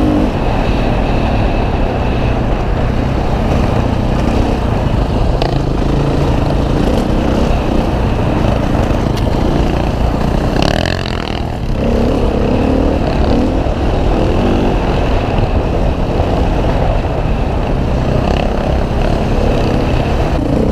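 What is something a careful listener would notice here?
A dirt bike engine roars up close, revving as it climbs and drops.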